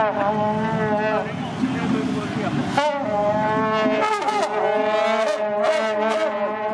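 A brass band plays a loud, steady tune outdoors.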